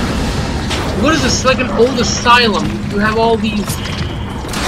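A creature growls and roars.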